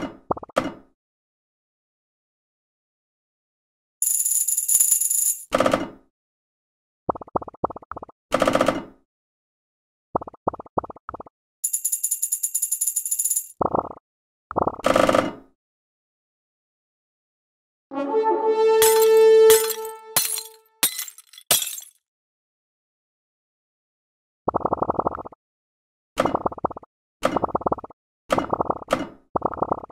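Short electronic pops sound in quick runs.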